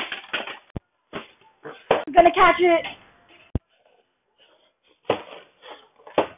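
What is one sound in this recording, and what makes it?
A cardboard box taps and rustles in a hand.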